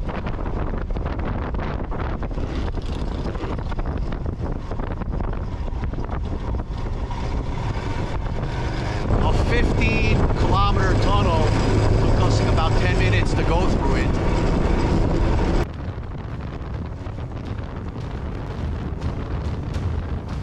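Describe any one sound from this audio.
Wind rushes and buffets past the rider.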